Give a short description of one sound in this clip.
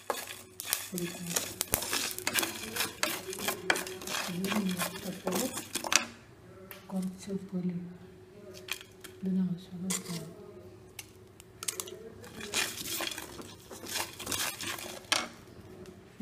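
Whole spices rattle and scrape as they are dry-roasted and stirred in a metal pan.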